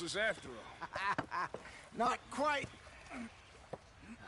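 A man speaks gruffly close by.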